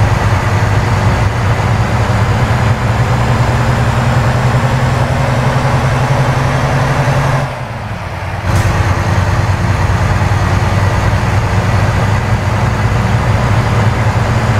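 A truck engine drones low and steady, briefly dropping away for a moment before it picks up again.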